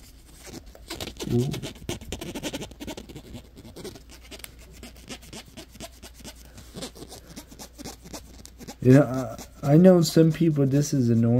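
Fingers fiddle and tap on a small plastic object.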